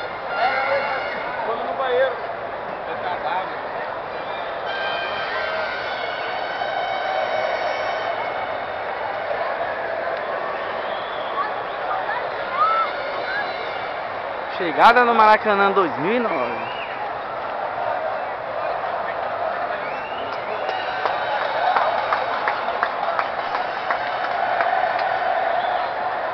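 A crowd of fans chatters and sings in a large open stadium.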